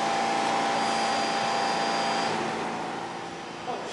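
A subway train's motor hums and whines as the train rolls to a stop.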